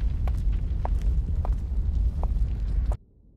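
High heels click slowly on a hard floor.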